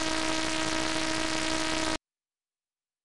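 A buzzy electronic chime plays over a loud hissing rush, then cuts off abruptly.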